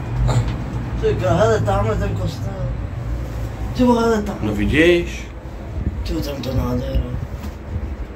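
An adult talks casually nearby.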